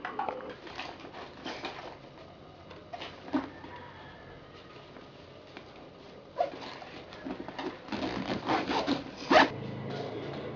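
Fabric of a bag rustles as a hand handles it.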